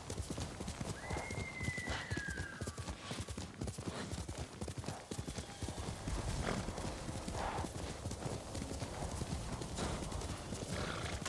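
Horse hooves gallop rapidly over grass.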